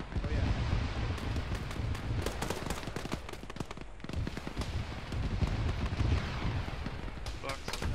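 Explosions rumble low and heavy far off.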